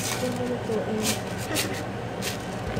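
Rice grains rattle inside a plastic jar as it is picked up.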